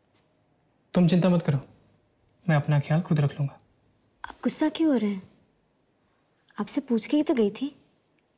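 A woman speaks calmly at close range.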